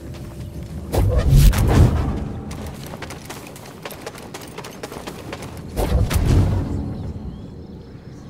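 A magical whoosh swells loudly and fades.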